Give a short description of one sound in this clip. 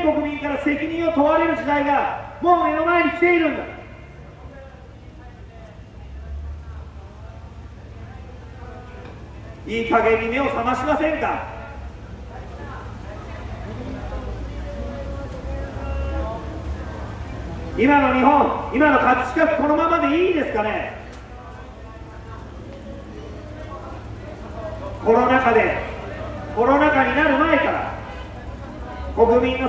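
A man gives a speech through a loudspeaker outdoors, in short bursts with pauses.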